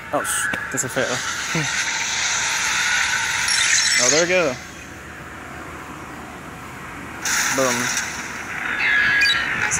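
Electronic game blasts whoosh and crackle in bursts.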